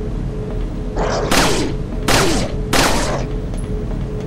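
A pistol fires several loud shots, each ringing out briefly.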